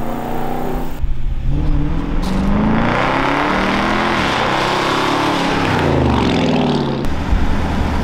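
A car engine roars and revs as the car drives closer.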